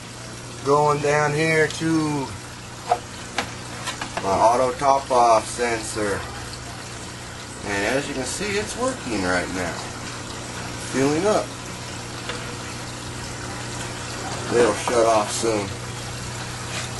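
A small water pump hums steadily.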